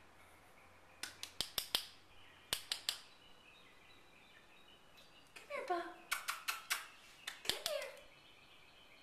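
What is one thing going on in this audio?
A small dog gnaws on a hard chew, making sharp clicking crunches.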